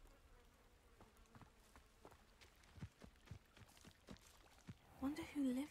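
Footsteps tread softly on grass and dirt.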